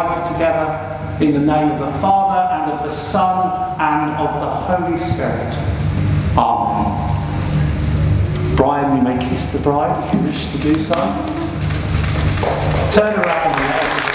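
An older man speaks calmly in a large echoing hall.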